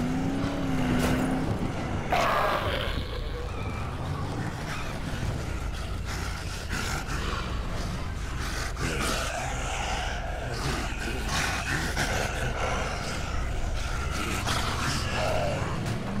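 A car engine hums while driving.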